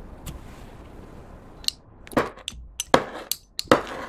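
A utensil pokes into soft slime, making wet crackling sounds.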